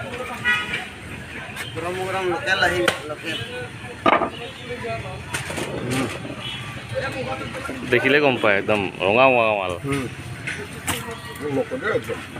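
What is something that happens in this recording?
A cleaver chops through meat and knocks on a wooden board.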